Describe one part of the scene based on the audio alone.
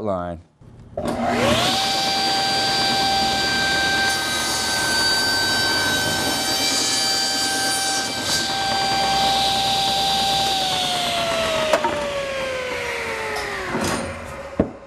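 A table saw whines steadily as it spins, then winds down.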